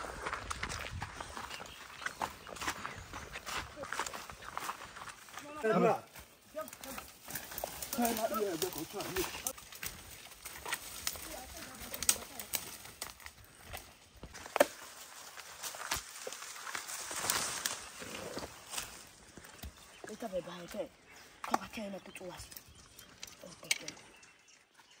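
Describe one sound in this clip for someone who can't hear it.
Leaves and twigs rustle and crackle as people push through dense brush.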